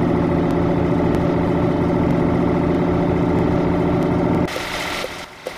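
A truck's diesel engine hums steadily from inside the cab.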